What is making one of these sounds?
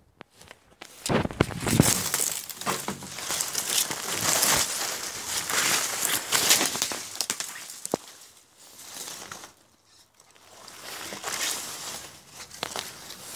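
Footsteps crunch and rustle through dry leaves and twigs.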